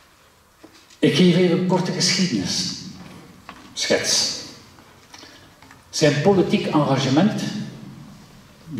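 An older man speaks calmly into a microphone in an echoing hall.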